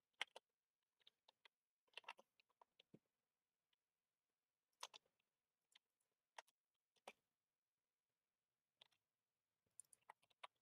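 Short, sharp clicks of a game's menu sound now and then.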